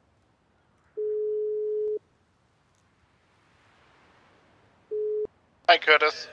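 A phone call's ringback tone beeps twice, steady and even.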